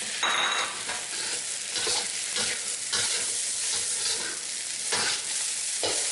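A spatula scrapes and clatters against a metal pan.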